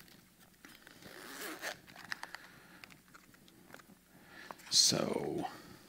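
A man handles a small plastic device up close, with soft clicks and rustles.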